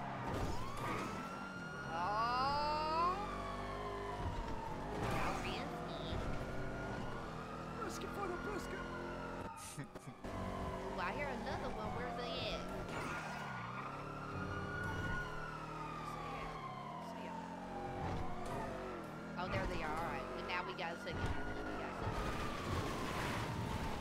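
A car engine roars, revving up through the gears again and again as the car speeds along.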